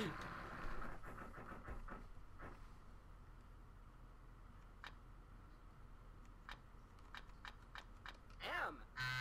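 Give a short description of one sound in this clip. A prize wheel clicks rapidly as it spins, then slows down.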